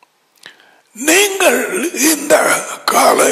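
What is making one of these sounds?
An elderly man speaks calmly and closely into a headset microphone.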